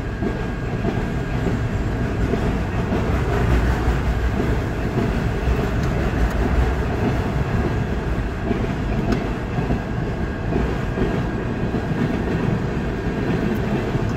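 A freight train rumbles past at speed.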